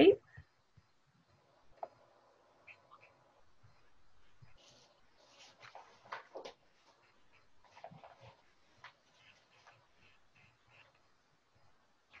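A pencil scratches softly across paper.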